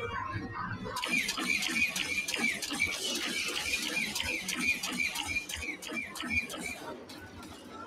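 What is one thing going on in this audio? A laser cannon fires rapid, repeated blasts.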